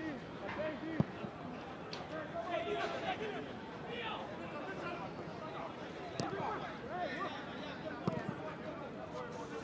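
A football is kicked on grass.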